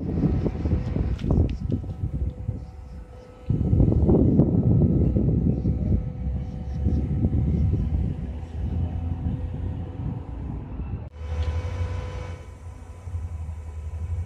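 A crane engine hums steadily.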